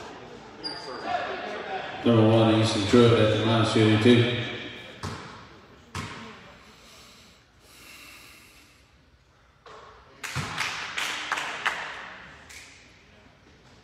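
Spectators talk and call out in a large, echoing gym.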